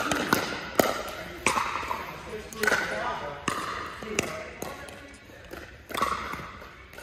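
Paddles pop sharply against a plastic ball, echoing in a large hall.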